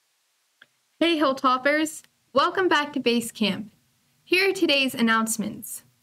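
A young woman speaks clearly into a close microphone.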